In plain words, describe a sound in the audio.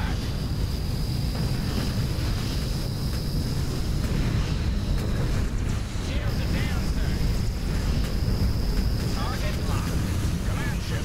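A deep engine rumble drones throughout.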